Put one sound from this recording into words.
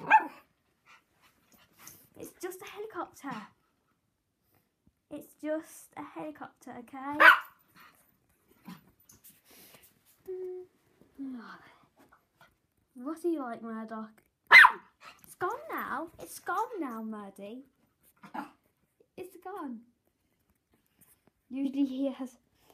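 A small dog whines and yips excitedly.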